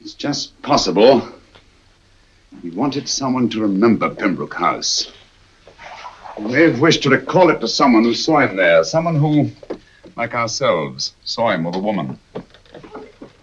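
Several middle-aged men talk calmly nearby.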